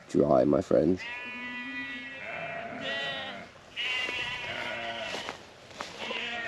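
Sheep bleat nearby.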